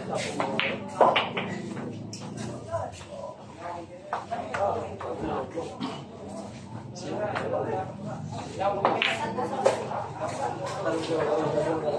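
Pool balls clack together on the table.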